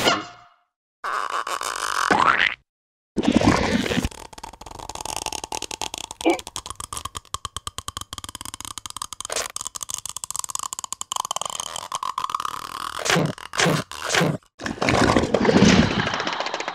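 A small cartoon creature chatters and squeals in a high voice.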